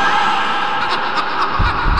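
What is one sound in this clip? A man laughs loudly and wildly.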